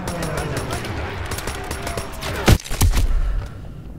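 Gunfire cracks loudly nearby.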